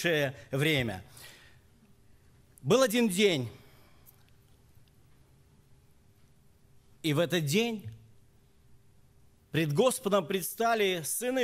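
A middle-aged man speaks with pauses into a microphone in a large room.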